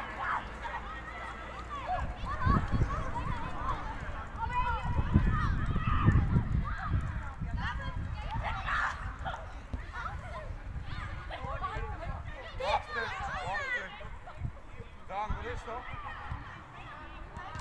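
Young players shout and call to each other across an outdoor pitch.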